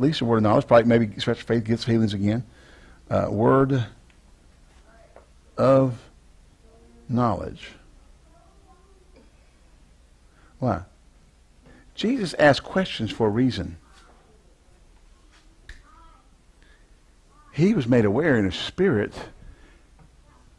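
A man speaks in a lively, lecturing manner, close to a microphone, with pauses between phrases.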